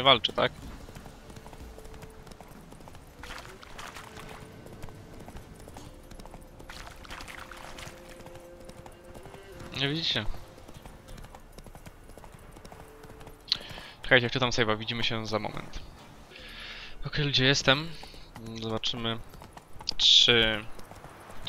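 A horse's hooves thud steadily on a dirt path.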